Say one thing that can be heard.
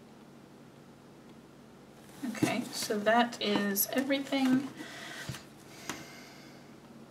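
Pages of a spiral planner turn and rustle.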